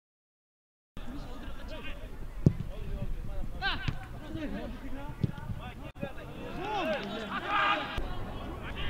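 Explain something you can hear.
Men shout to each other across an open football pitch.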